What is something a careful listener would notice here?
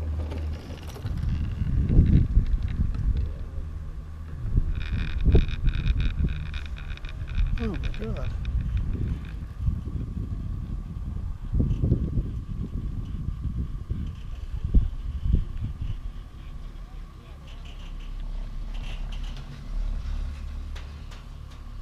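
Wind gusts and rumbles against the microphone outdoors.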